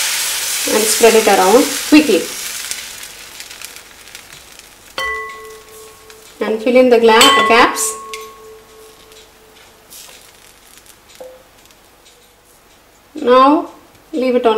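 A metal ladle clinks against a pan.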